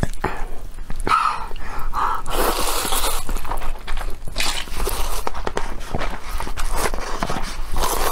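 A young woman slurps noodles loudly close to a microphone.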